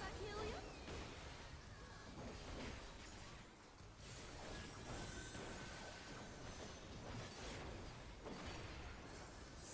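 Game spell effects crackle and whoosh in quick bursts.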